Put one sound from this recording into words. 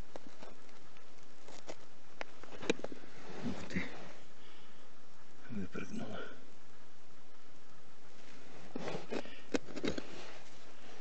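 A gloved hand scrapes and crumbles dry soil close by.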